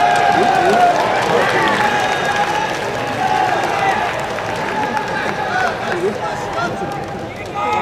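A crowd of spectators cheers and chants loudly outdoors.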